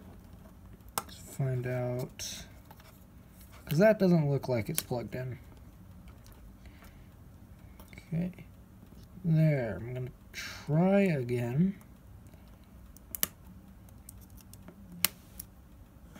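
Small plastic clicks sound as a thin tool pries a phone's casing apart.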